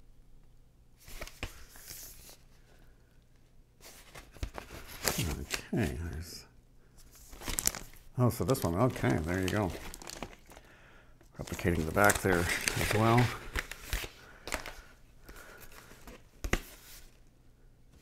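Paper record sleeves rustle and flap as they are handled.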